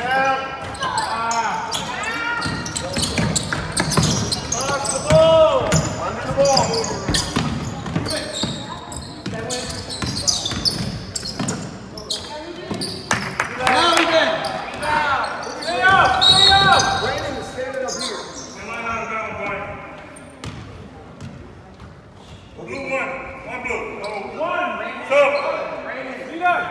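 A crowd of spectators shouts and cheers close by.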